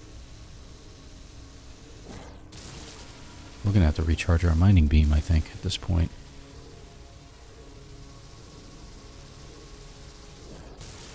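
A laser beam hums steadily as it fires.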